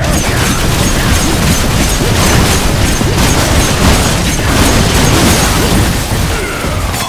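Cans and boxes crash and clatter as shelves are smashed.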